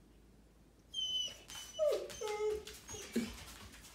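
A dog's claws click on a hard floor.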